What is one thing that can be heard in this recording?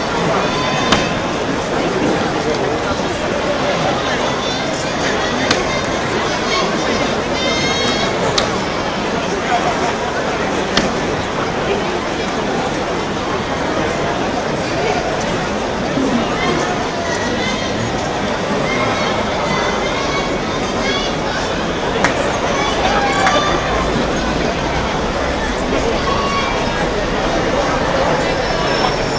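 A large outdoor crowd chatters and murmurs loudly all around.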